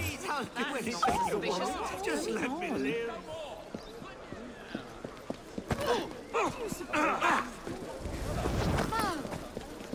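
Footsteps run quickly on cobblestones.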